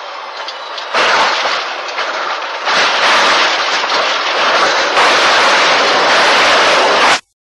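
A jet engine roars loudly.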